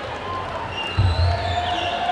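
Drums thump heavily.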